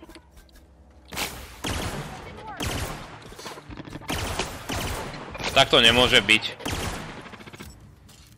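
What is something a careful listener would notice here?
A gun fires in rapid bursts with sharp cracks.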